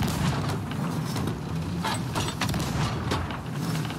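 A cannon fires with a loud boom.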